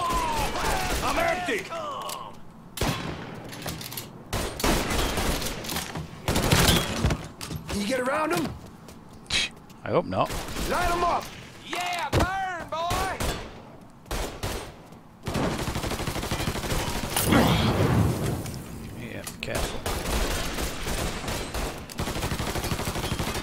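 Rapid gunshots ring out in bursts, echoing sharply.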